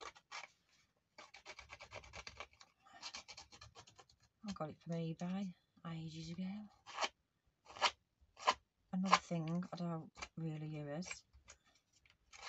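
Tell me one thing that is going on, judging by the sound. Paper rustles and crinkles as it is handled up close.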